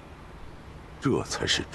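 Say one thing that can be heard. A second man answers in a low, steady voice.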